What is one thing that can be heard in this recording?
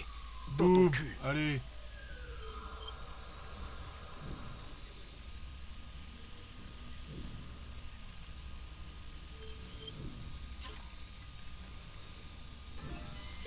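A small drone buzzes steadily as it flies.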